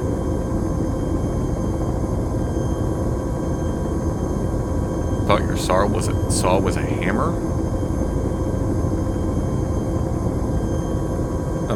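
An aircraft engine drones with a loud, steady low rumble.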